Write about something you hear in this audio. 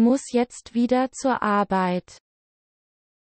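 A young woman speaks calmly and clearly.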